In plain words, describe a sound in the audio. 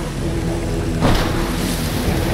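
A motorbike splashes into water.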